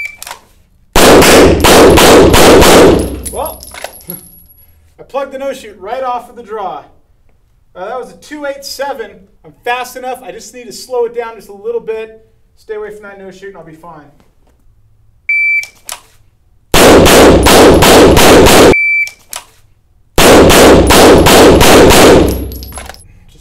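A pistol fires rapid shots that ring loudly in an echoing room.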